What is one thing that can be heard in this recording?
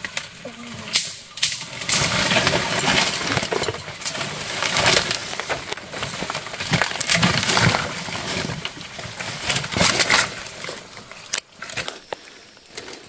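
Dry twigs snap and crack underfoot.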